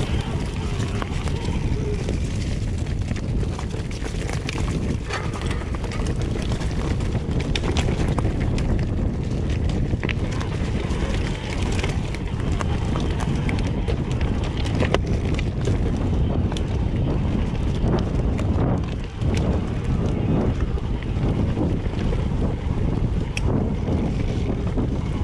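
A bicycle rattles and clanks over bumps.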